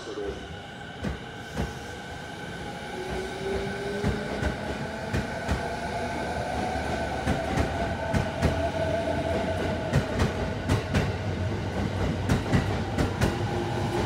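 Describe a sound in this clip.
Train wheels clatter over rail joints, faster and faster.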